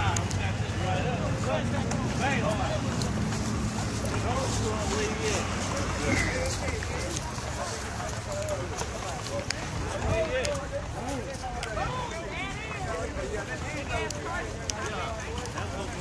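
Horse hooves thud on grass.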